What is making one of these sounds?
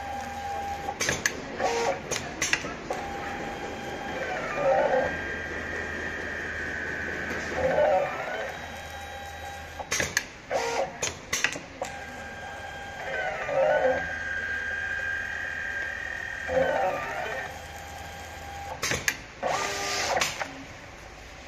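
A sewing machine clatters with sharp clicks as its parts move.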